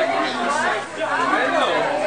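A group of adults chatter nearby.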